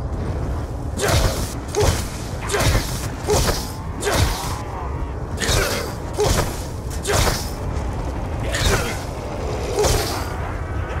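A pistol fires sharp shots one after another.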